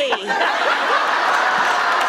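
A man laughs out loud.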